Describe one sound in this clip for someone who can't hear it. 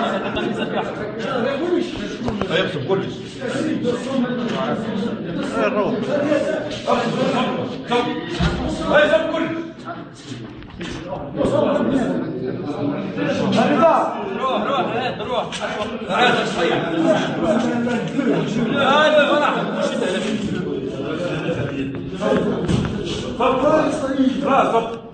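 Several men talk over one another close by, with animation.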